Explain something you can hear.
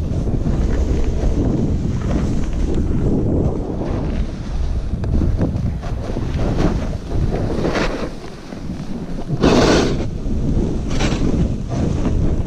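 Skis scrape and hiss over crusty snow.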